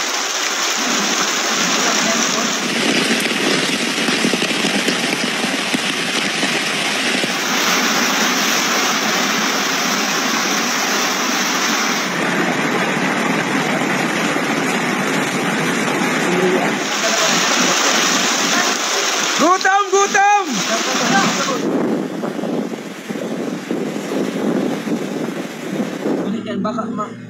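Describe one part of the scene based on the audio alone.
Floodwater rushes and churns loudly.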